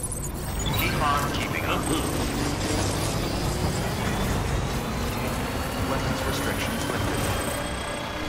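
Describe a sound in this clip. An off-road vehicle's engine rumbles as it drives over rough ground.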